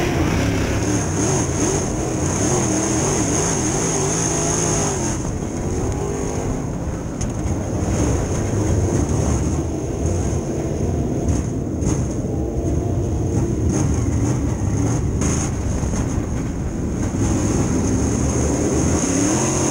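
A race car engine roars loudly at high revs, rising and falling as the car goes through turns.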